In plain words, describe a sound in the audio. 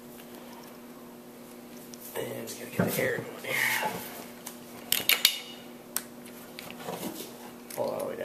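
A metal hose fitting clicks and rattles as it is handled.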